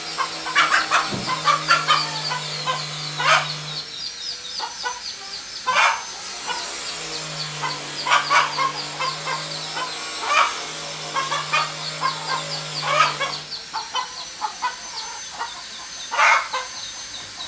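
Chicks peep rapidly and constantly.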